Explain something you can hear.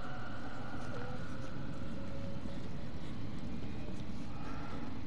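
Footsteps crunch slowly on a dirt floor.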